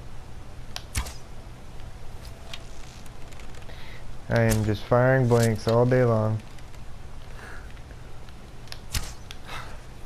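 A bowstring twangs sharply as an arrow is loosed.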